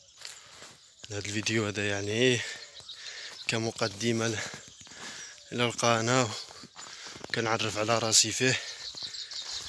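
A young man speaks calmly and close by, in short bursts.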